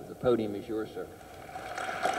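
A man speaks into a microphone, heard through a loudspeaker.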